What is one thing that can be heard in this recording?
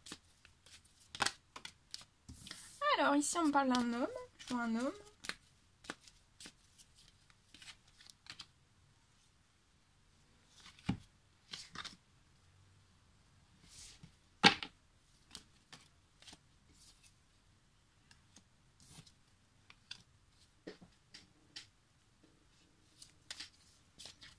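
Cards are laid down on a table with soft taps and slides.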